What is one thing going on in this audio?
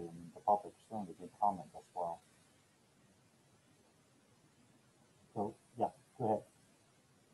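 A man speaks calmly through an online call, in short phrases with a pause.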